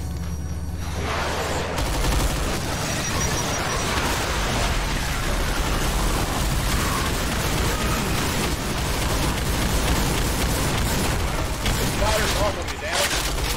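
Guns fire rapidly and loudly.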